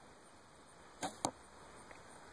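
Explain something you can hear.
A bowstring snaps as an arrow is shot.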